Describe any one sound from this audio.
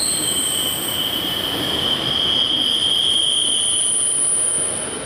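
Train wheels squeal shrilly and steadily.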